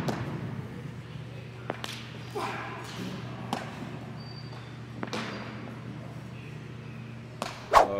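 A ball smacks into a glove.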